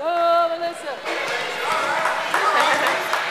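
Children shout and call out in an echoing hall.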